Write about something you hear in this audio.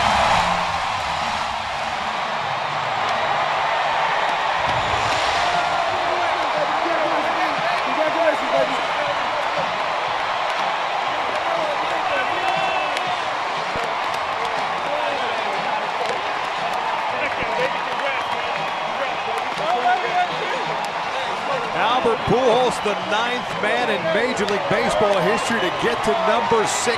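A large stadium crowd cheers loudly.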